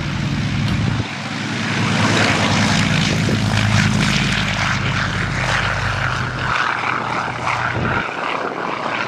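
A propeller plane's engine roars loudly as it races down a runway.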